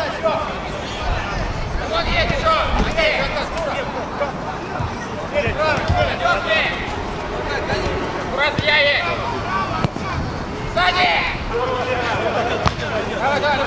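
Young men shout to each other across an outdoor pitch.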